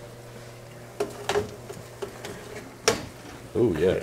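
A metal baking tray clanks and scrapes against an oven rack.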